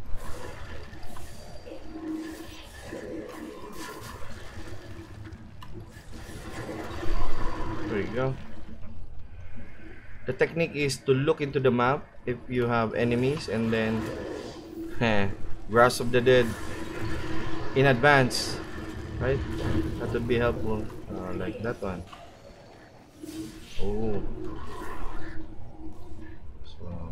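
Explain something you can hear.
Magic spells crackle and burst in a game fight.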